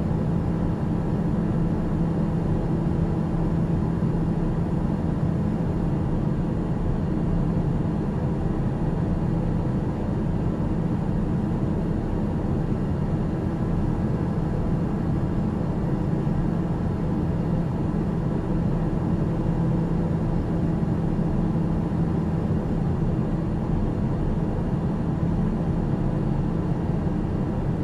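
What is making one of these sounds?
A single-engine turboprop drones steadily in cruise, heard from inside the cabin.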